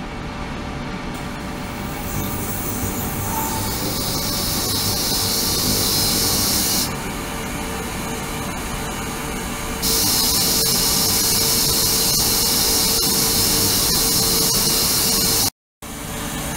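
Water pours and splashes into a metal tank.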